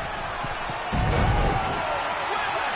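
A heavy body slams onto a wrestling mat with a deep thud.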